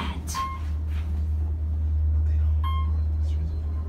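An elevator chime dings briefly as it passes floors.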